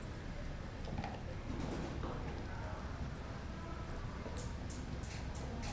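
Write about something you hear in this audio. A dog gnaws and crunches on a bone close by.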